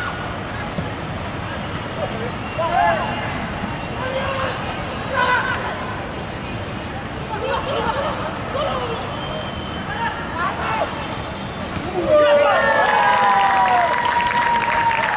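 A crowd of spectators murmurs steadily.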